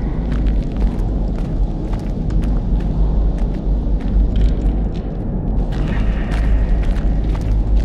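Footsteps walk over rough ground.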